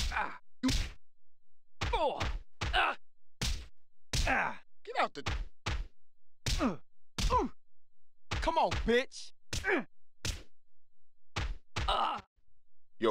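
Boxing punches land with heavy thuds.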